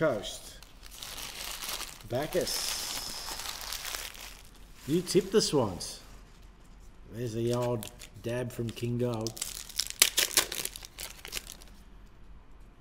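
Plastic wrappers crinkle as card packs are torn open.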